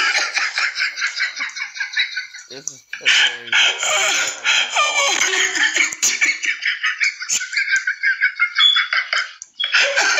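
A man talks and laughs through an online call.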